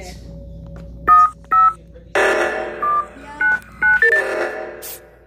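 Electronic keypad buttons beep as a code is entered.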